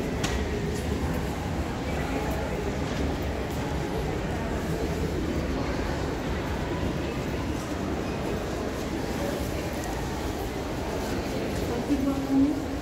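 People talk quietly in a large echoing hall.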